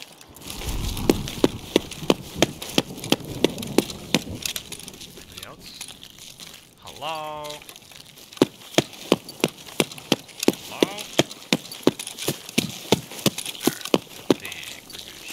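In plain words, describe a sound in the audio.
Footsteps crunch steadily on gravel and concrete.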